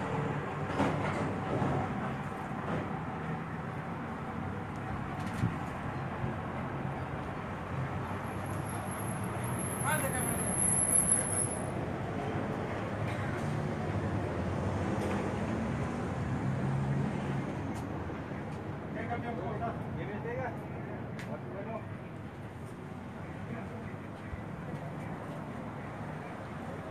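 Several adults talk and argue close by outdoors.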